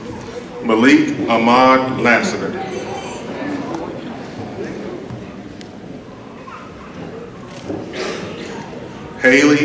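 A man reads out names over a loudspeaker in a large echoing hall.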